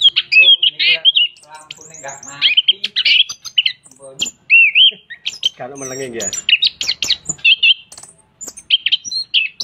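A bird sings loud, varied whistles and chirps close by.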